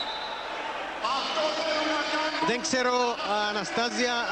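A large crowd chants loudly in unison in an echoing arena.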